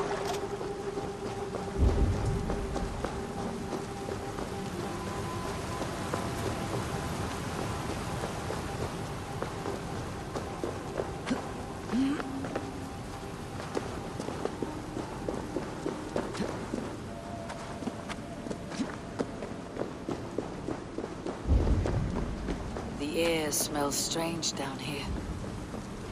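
Footsteps crunch steadily on rock and wood.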